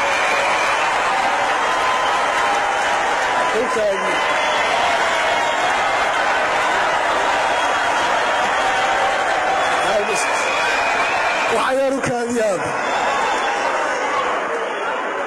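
A large crowd cheers and shouts loudly in a big echoing hall.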